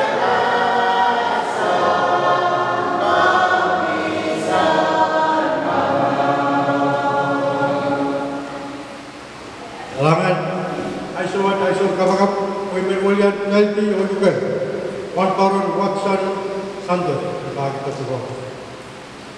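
A man sings slowly through a microphone.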